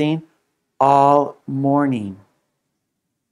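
A man speaks clearly and slowly through a microphone.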